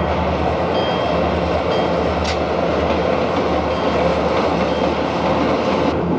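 A diesel locomotive engine rumbles steadily as a train crosses a bridge.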